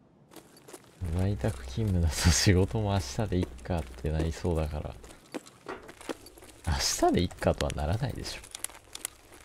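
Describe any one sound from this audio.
A young man talks animatedly into a nearby microphone.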